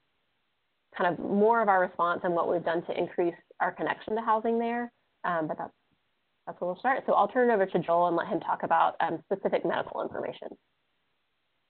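A woman speaks calmly over an online call.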